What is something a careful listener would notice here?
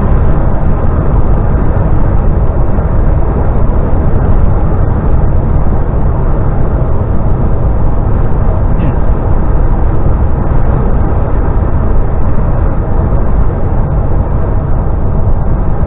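Tyres roar steadily on a road surface.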